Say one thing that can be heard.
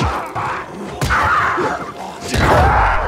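A creature snarls and growls.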